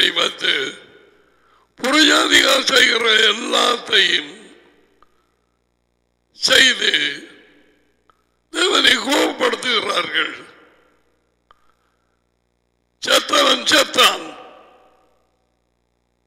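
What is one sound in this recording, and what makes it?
A middle-aged man speaks emphatically through a headset microphone, in bursts with pauses.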